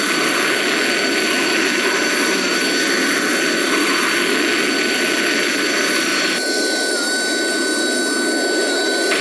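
A jet engine roars steadily with a high, thin whine.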